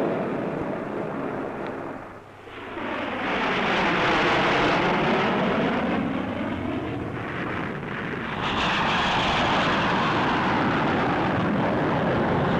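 Jet planes roar loudly overhead.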